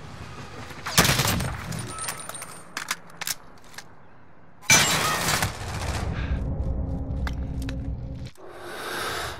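Rapid gunfire bursts out loudly in short volleys.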